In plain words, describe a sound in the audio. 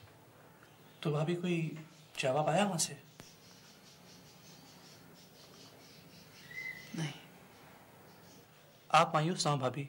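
A man speaks calmly and quietly nearby.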